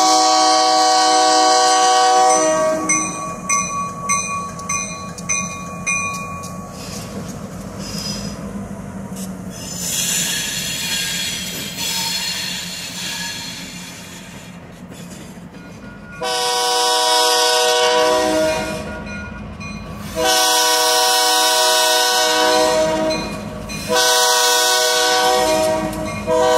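A locomotive horn blasts loudly in long, repeated blows.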